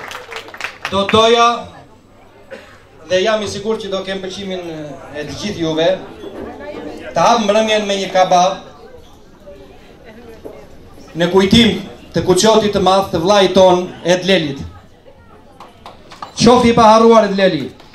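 A man speaks loudly through a microphone and loudspeakers in a large room.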